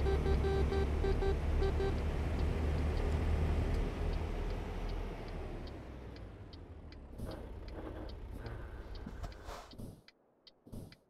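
A truck engine rumbles steadily, then winds down and falls silent.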